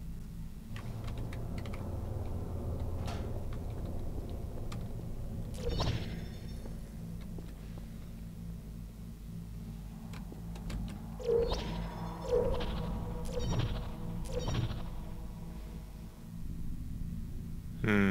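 A low mechanical hum drones throughout.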